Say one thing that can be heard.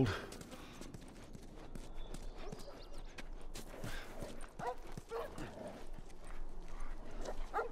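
Footsteps tread on hard ground.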